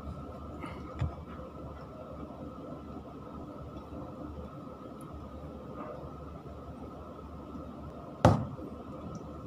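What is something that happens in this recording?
A metal tool clicks sharply.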